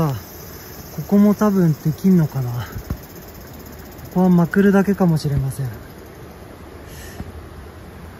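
Tent fabric rustles as a hand tugs on it.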